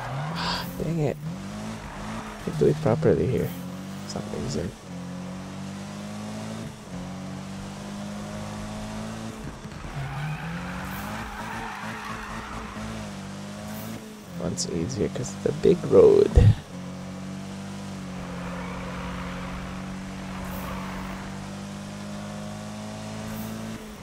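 A car engine hums steadily, revving up now and then.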